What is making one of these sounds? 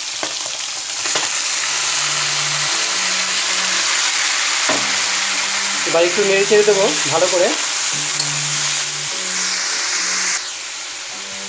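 Vegetables sizzle loudly in hot oil.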